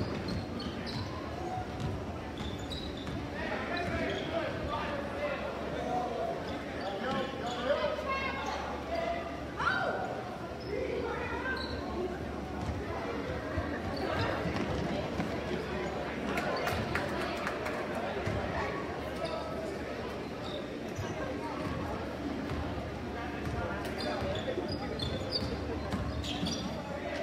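A crowd of spectators cheers and talks in a large echoing gym.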